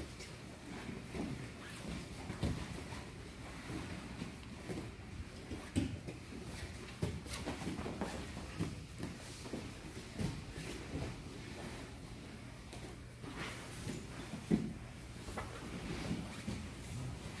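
Bare feet squeak and slide on a mat.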